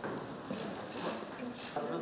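A paper ballot drops into a plastic box.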